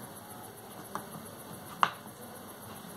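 A paintbrush taps against a paint palette.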